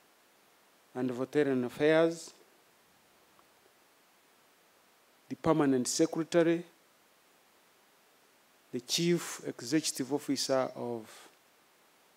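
A man speaks slowly and formally into a microphone, in short phrases with pauses.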